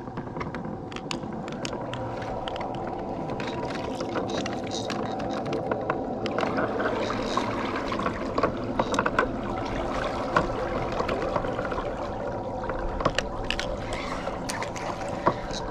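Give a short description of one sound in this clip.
Water laps and splashes softly against the side of a boat.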